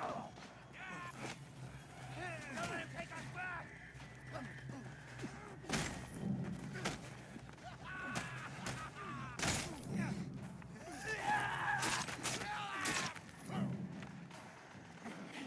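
Heavy punches land with hard thuds in a fast brawl.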